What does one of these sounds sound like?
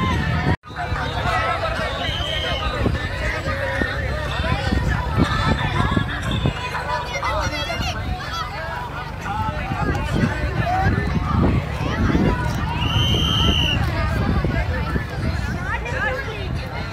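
A crowd of children chatter and call out nearby, outdoors.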